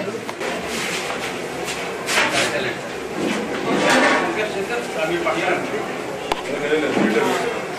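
A metal lid clanks on a large pot.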